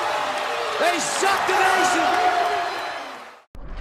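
A man commentates excitedly.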